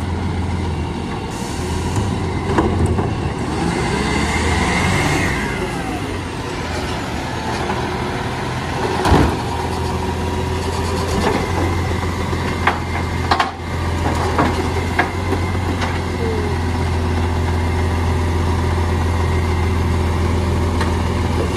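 A diesel truck engine rumbles steadily close by.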